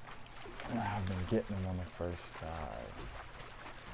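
A fish splashes and thrashes in the water.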